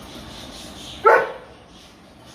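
A dog gives a short sharp bark.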